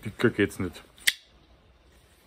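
A knife blade clicks open.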